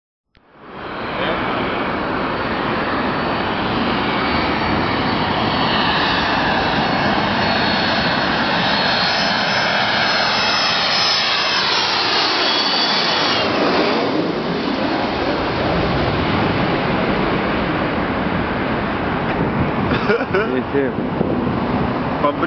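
A jet airliner roars loudly as it flies low overhead, its engine whine dropping in pitch as it passes.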